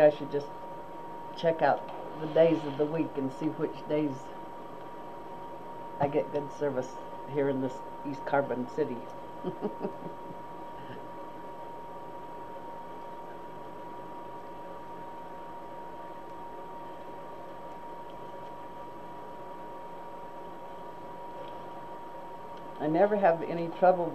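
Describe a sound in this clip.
An elderly woman talks calmly.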